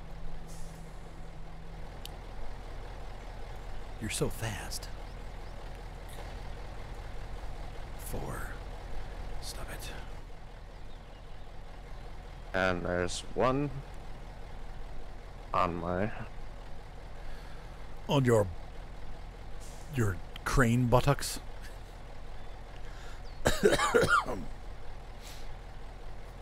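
A heavy truck engine rumbles steadily at low revs.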